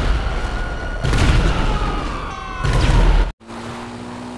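A tank cannon fires with loud booming explosions.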